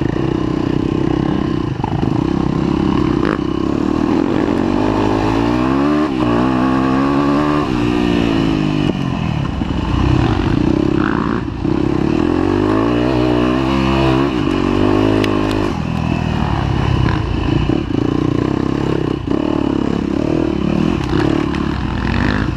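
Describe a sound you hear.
A dirt bike engine revs loudly up and down, close by.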